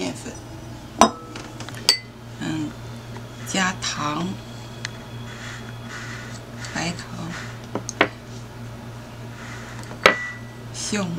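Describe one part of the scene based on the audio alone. A spatula clinks against a glass bowl.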